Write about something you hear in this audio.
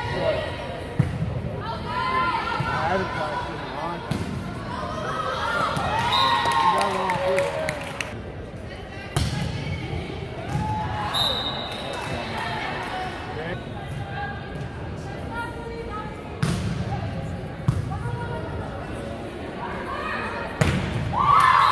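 A volleyball is hit with sharp smacks in a large echoing gym.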